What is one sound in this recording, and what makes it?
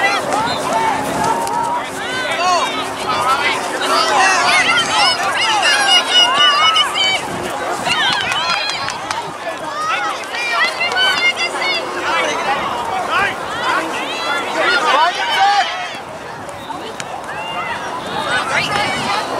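A crowd of men and women shout and cheer outdoors.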